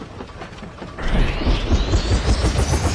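A helicopter engine starts up and its rotor whirs loudly, rising in pitch.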